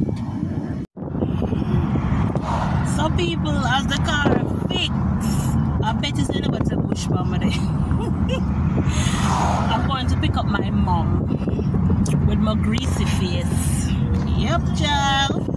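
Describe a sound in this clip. A woman talks with animation close to a phone microphone.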